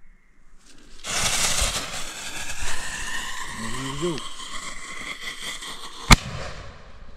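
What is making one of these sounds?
A firework fuse fizzes and sputters loudly.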